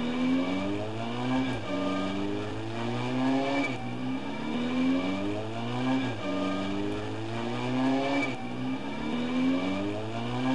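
A motorbike engine revs up and shifts gears again and again.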